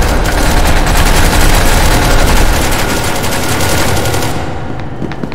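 A loud blast roars and rumbles.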